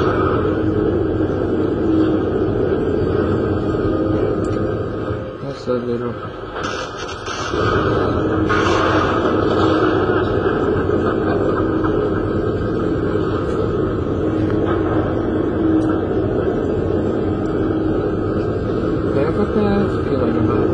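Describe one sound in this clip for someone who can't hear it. Dark, rumbling game sounds play through a loudspeaker.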